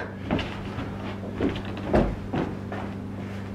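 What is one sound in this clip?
Footsteps knock on a floor.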